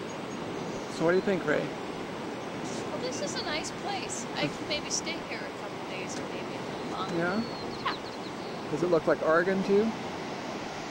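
A woman talks close by.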